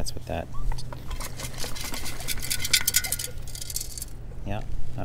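Sand rattles and hisses as it is sifted through a metal scoop.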